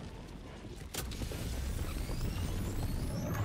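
A loud rumbling roar starts up and goes on.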